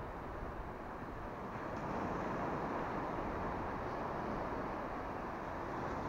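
Small sea waves wash up onto a sandy beach.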